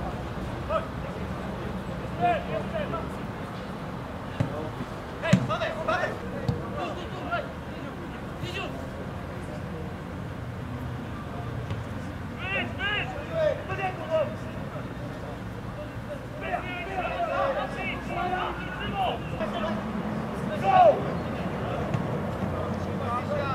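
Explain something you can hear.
Players shout to each other across an open outdoor field.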